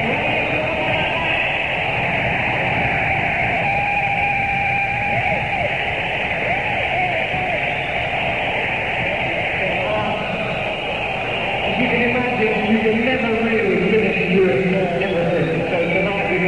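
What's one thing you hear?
An electric guitar plays loudly in a live rock performance, heard through a muffled old recording.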